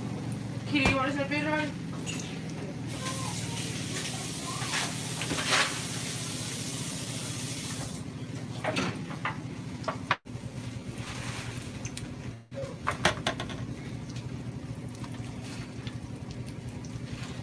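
Pancakes sizzle in a hot frying pan.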